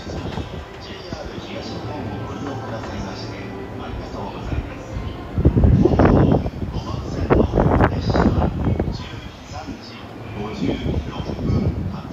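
A train rumbles as it approaches along the tracks.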